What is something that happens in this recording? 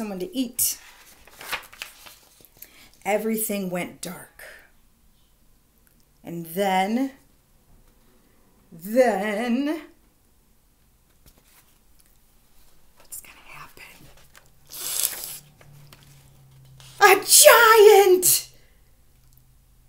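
Book pages rustle as they turn.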